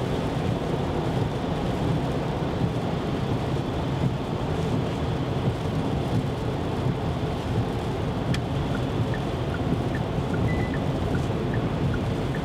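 Windscreen wipers sweep across the glass.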